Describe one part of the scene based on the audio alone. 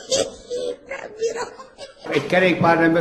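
A woman laughs into her hand up close.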